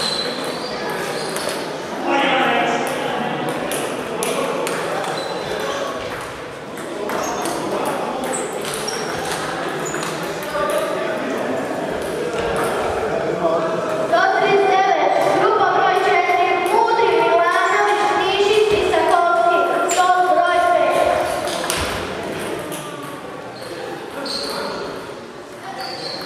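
Table tennis balls click on tables and paddles in a large echoing hall.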